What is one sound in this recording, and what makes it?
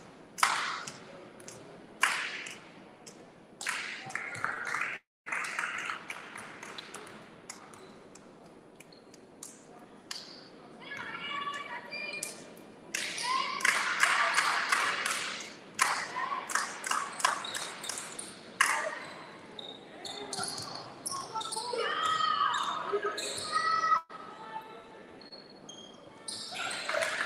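A basketball bounces on a wooden floor with a hollow thud.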